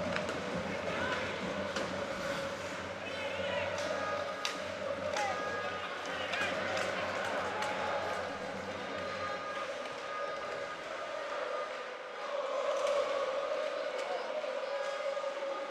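A crowd cheers and chants steadily in a large echoing arena.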